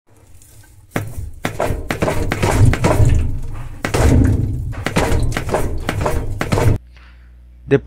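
A rope rustles and scrapes against a plastic tub.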